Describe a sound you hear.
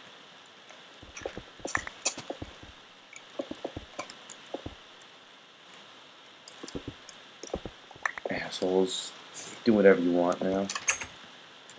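Stone blocks knock and crunch as they are broken and placed.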